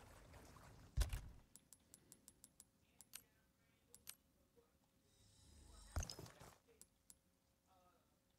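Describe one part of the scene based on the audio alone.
Soft menu clicks tick quickly one after another.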